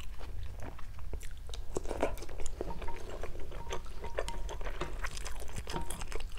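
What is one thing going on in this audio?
Chopsticks clink and rustle against a glass bowl of noodles.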